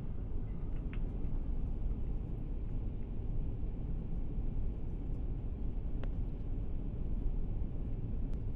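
A train rumbles low and steadily along the tracks.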